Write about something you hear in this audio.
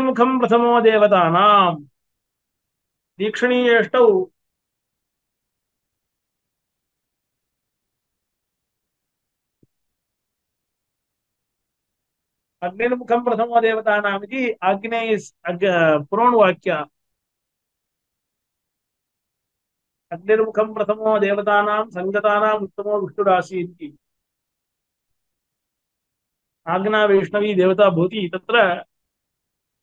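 A man recites in a steady, chanting voice close to a microphone, in bursts separated by silent pauses.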